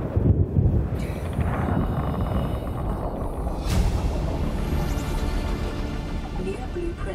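Water gurgles and rumbles in a muffled way underwater.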